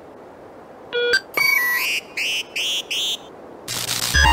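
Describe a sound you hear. A handheld device beeps in a quick series of electronic tones.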